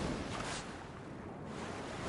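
Flames roar and crackle in a sudden burst.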